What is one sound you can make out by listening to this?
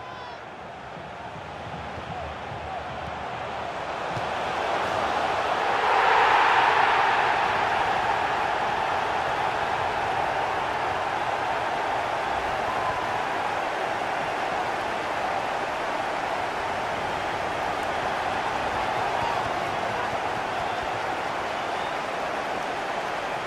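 A large stadium crowd cheers steadily, swelling into a loud roar and then settling.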